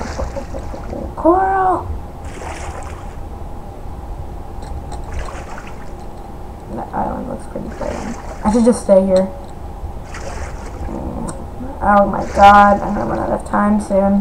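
Muffled water ambience rumbles low and steady.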